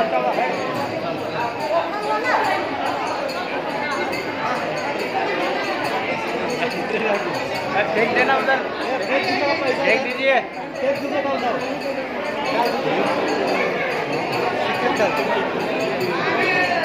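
A crowd of people chants and calls out loudly.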